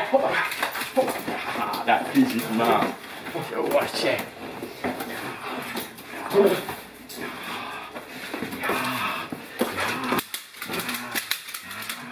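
Dog claws scrape on a hard floor.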